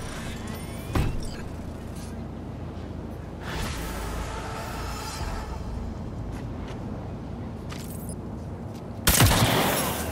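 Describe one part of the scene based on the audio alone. A gun fires with a loud bang.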